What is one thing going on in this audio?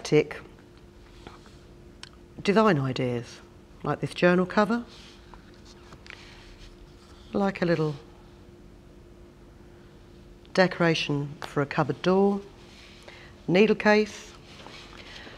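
Stiff paper rustles and taps softly as it is handled.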